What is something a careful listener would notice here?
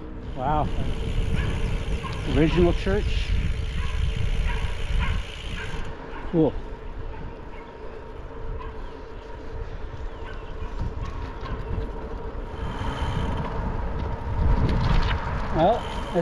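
Wind rushes and buffets loudly against the microphone outdoors.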